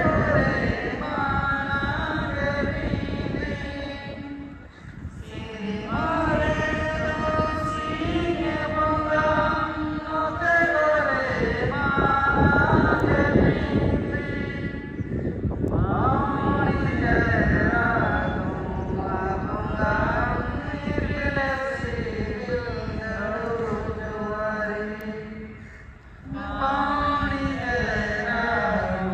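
A large group of women sings together in unison outdoors, pausing briefly between verses.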